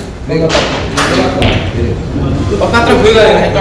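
Billiard balls knock together.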